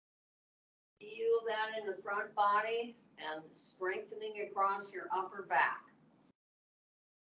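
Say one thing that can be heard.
A middle-aged woman speaks calmly, giving instructions through a microphone on an online call.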